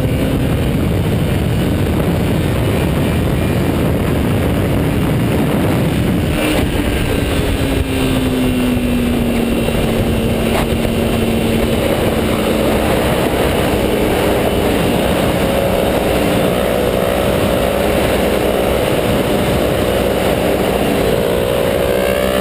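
A motorcycle engine hums steadily and shifts in pitch.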